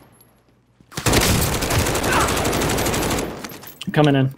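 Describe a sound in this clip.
Rapid gunfire rattles in a long burst.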